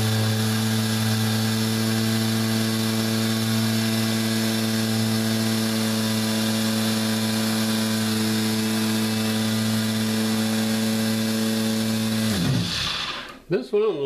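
An electric motor hums steadily and loudly, then winds down and stops.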